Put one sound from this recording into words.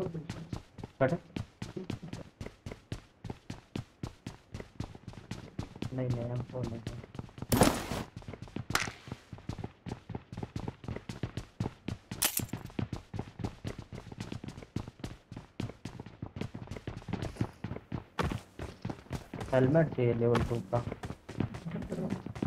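Footsteps patter quickly and steadily as a game character runs.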